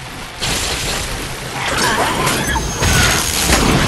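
Fiery blasts burst and crackle.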